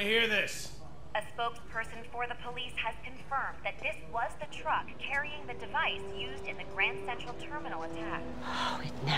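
A male news reporter speaks through a television loudspeaker.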